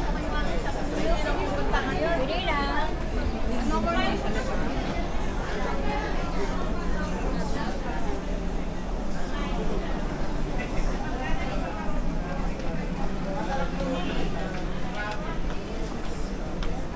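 A crowd of shoppers chatters in a large, busy indoor hall.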